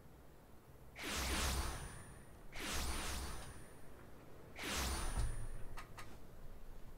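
Loud magical whooshes rush in one after another as figures arrive.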